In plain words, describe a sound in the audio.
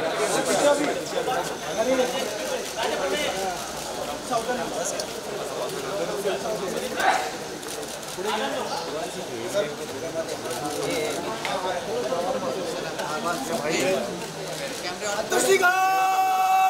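A large crowd murmurs and calls out outdoors.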